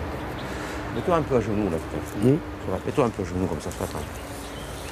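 An elderly man speaks calmly nearby, outdoors.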